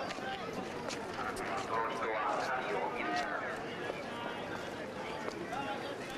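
Footsteps tap on pavement nearby.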